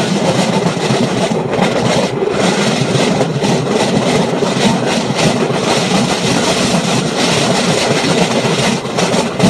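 Wind buffets loudly as the vehicle moves at speed.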